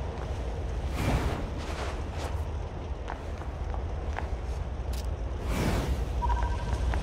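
A blade whooshes through the air.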